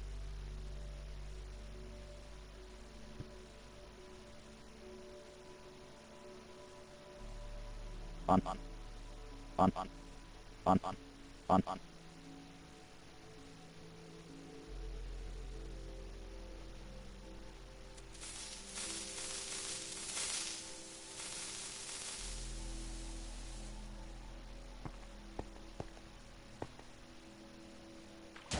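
Soft, slow game music plays throughout.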